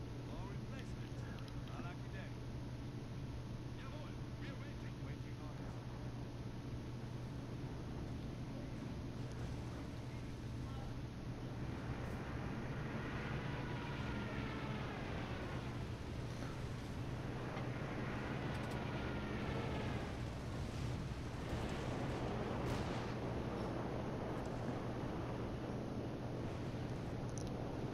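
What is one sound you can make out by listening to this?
Tank engines rumble steadily.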